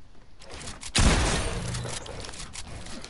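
A whooshing burst sounds in a video game.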